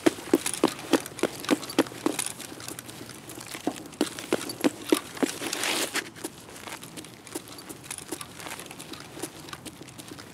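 Footsteps run quickly over hard pavement.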